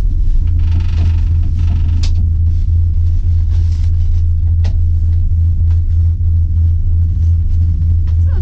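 Ski gloves rustle and knock against clothing close by.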